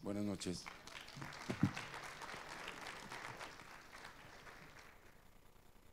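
An audience applauds in a large hall, then the clapping fades.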